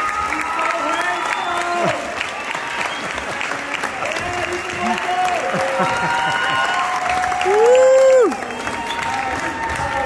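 Men and women in a crowd cheer and whoop loudly.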